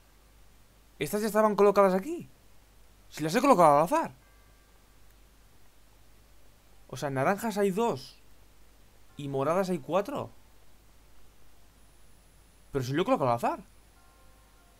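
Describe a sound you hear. A young man speaks into a microphone with animation, in short bursts.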